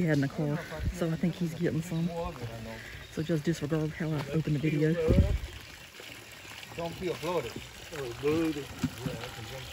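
Water pours from a pump into a jug.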